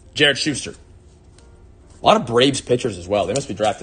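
Trading cards slide and shuffle between hands.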